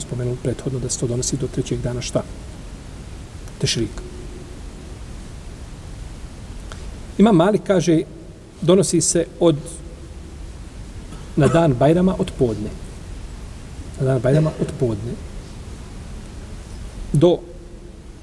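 A middle-aged man speaks slowly and calmly into a microphone, pausing between phrases.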